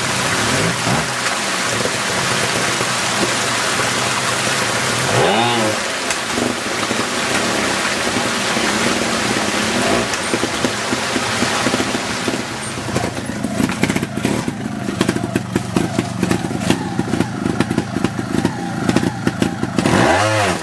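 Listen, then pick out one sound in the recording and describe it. A motorcycle engine revs in short bursts, rising and falling.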